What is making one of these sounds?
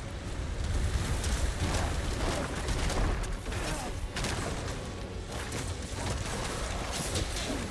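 Fantasy combat sound effects clash and crackle in a video game.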